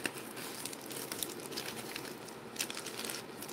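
Plastic wrapping crinkles and rustles as hands handle it.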